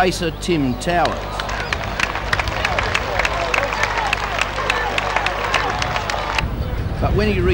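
A crowd applauds from outdoor stands.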